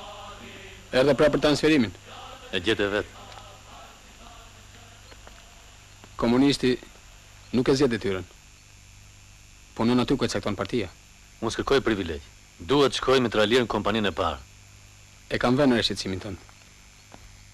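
A man speaks close by in short, earnest phrases with pauses between them.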